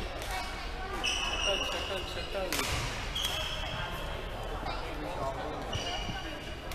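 Sneakers squeak sharply on a hall floor, echoing.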